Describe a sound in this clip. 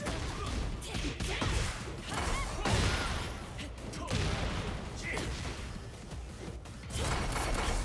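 Sharp magical blasts crackle and boom.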